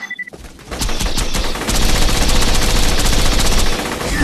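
Explosions crackle and boom.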